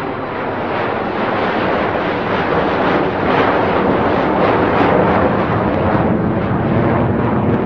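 A jet airliner's engines roar loudly close by.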